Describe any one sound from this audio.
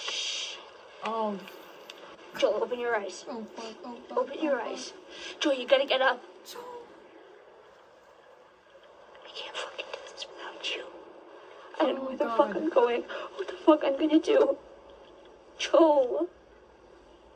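A young woman speaks close to a microphone, dramatically and with emotion.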